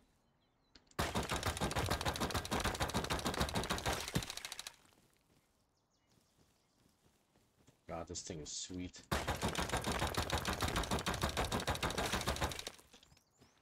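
A rapid-fire gun shoots in long, fast bursts.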